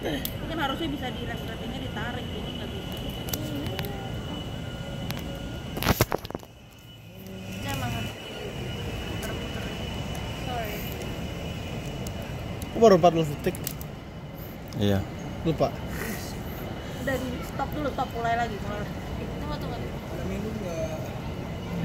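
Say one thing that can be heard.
Young women talk casually nearby.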